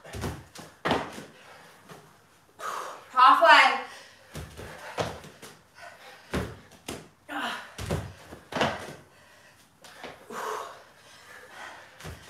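Dumbbells knock against the floor.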